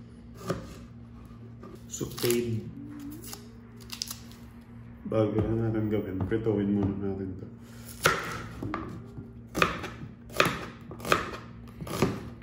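A knife chops through vegetables and knocks on a cutting board.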